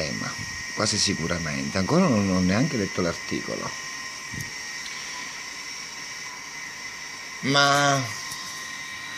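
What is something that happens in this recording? A man speaks animatedly close by.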